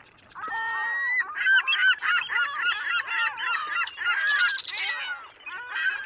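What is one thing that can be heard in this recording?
Seagulls cry loudly overhead.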